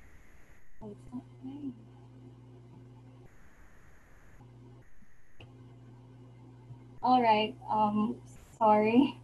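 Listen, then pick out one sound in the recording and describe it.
A young woman speaks calmly through an online call microphone.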